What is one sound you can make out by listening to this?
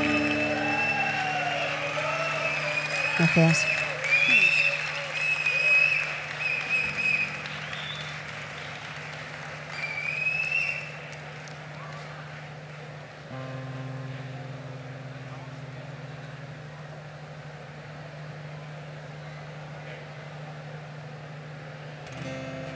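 An acoustic guitar plays through loudspeakers.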